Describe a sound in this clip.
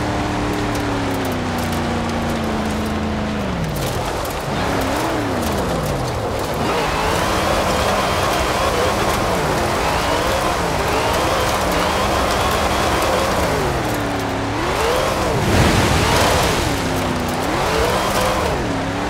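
Tyres crunch and hiss on gravel.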